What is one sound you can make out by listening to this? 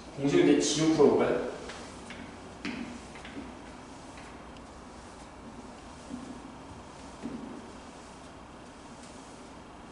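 A felt eraser rubs across a chalkboard.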